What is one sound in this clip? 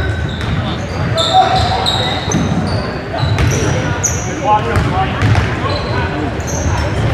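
Spectators murmur and call out around the court.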